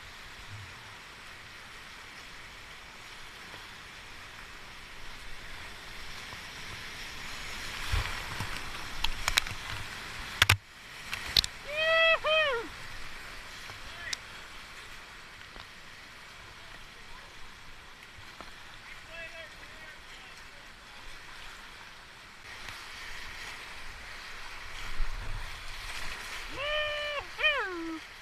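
Whitewater rapids roar steadily close by.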